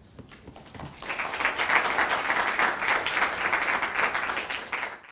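Several people clap their hands in applause.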